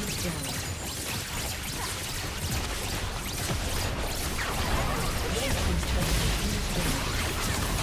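Magic spells crackle and blasts boom in a busy fight.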